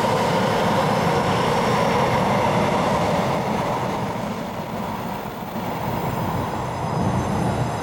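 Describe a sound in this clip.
A train rumbles and clatters as it pulls out along the tracks.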